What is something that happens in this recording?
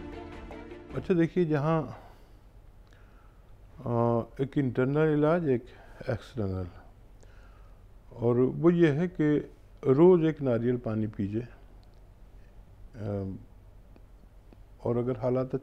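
A middle-aged man speaks calmly into a microphone, explaining.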